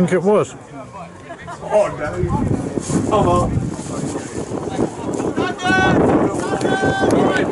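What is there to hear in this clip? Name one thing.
Young men shout and cheer outdoors in celebration.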